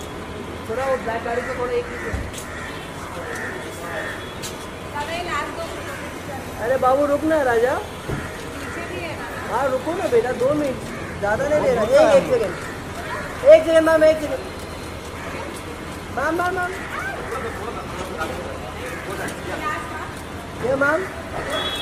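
Men call out outdoors.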